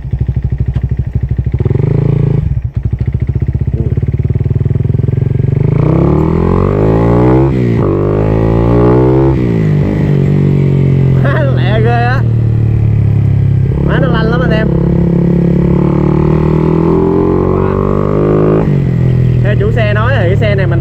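A motorcycle engine idles with a rapid throb, then revs up and climbs through the gears.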